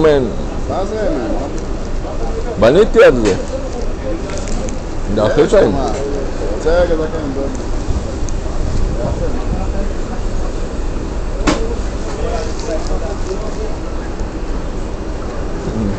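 A paper wrapper crinkles in a hand.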